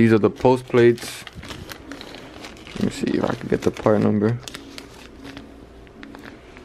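A plastic packet crinkles in a hand.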